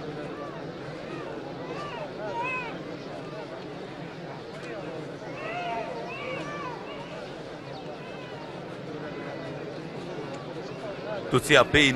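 A crowd of men and women murmur and chatter outdoors.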